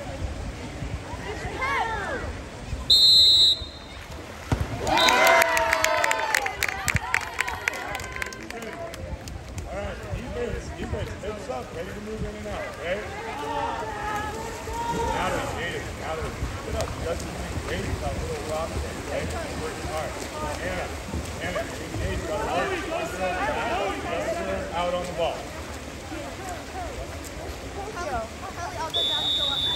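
Players splash and thrash in the water.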